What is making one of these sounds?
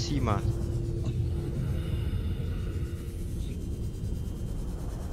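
A small submarine's engine hums low and steady underwater.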